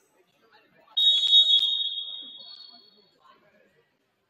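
A referee's whistle blows loudly in an echoing gym.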